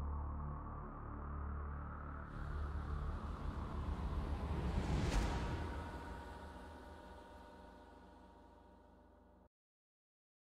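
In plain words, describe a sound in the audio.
A deep rumbling swells to a loud whoosh, then slowly fades away.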